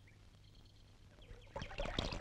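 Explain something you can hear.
Water splashes and trickles through cupped hands.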